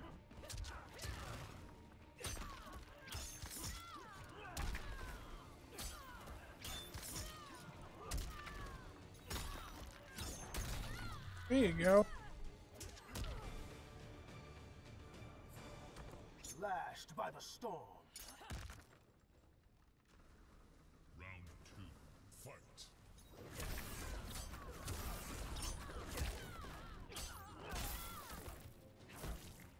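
Punches and kicks land with heavy thuds and cracks.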